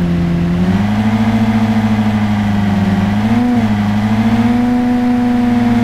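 A sports car engine hums steadily and shifts pitch as the car drives.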